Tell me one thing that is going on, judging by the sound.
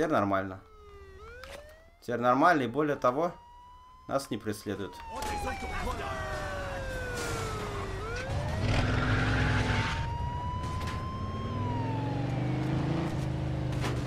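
A siren wails and rises and falls.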